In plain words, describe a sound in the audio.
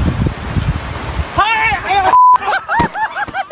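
A man splashes into the water.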